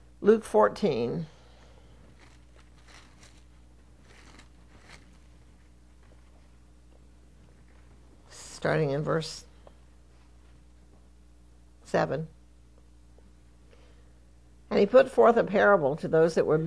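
An elderly woman speaks slowly and calmly into a microphone, with long pauses.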